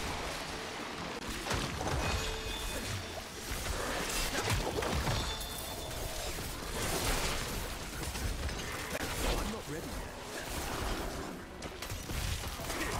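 Weapons slash and magic bursts crash in a fast fight.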